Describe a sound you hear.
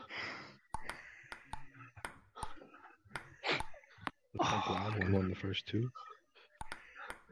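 A table tennis ball clicks sharply off paddles and the table.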